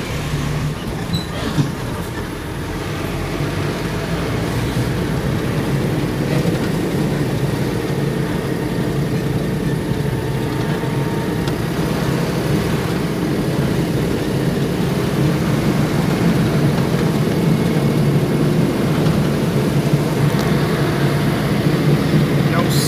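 A vehicle engine hums while driving along a paved street.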